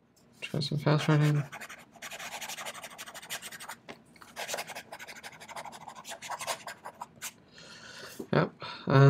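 A pen nib scratches across paper.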